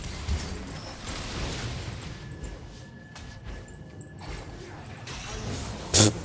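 Spell blasts and weapon hits clash in a fast fight.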